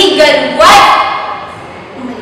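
A young woman speaks firmly, close by.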